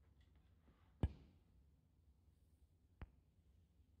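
A cue tip strikes a snooker ball with a sharp click.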